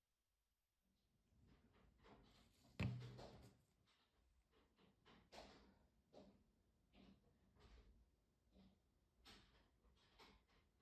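A bottle cap knocks and rattles as it is handled.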